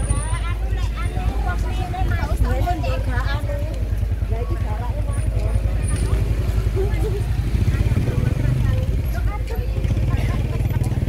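Women chatter and call out nearby as a crowd.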